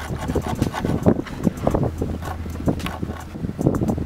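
A screwdriver scrapes as it turns a screw into wood.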